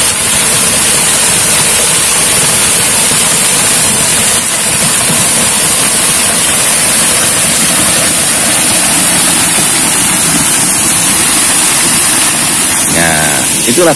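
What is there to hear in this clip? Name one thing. Water gushes steadily from a pipe and splashes down onto rocks.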